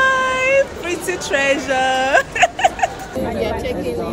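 A young woman speaks excitedly close by.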